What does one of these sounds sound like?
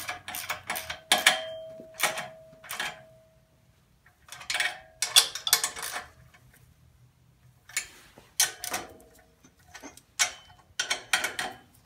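Metal tools clink and scrape against an engine.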